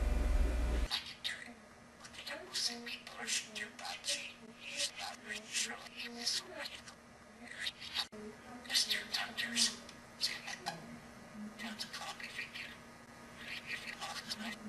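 A budgie chatters in quick, high, speech-like bursts.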